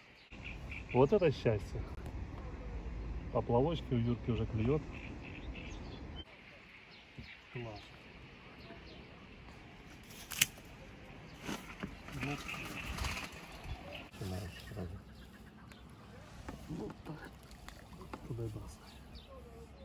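Two men talk calmly nearby, outdoors.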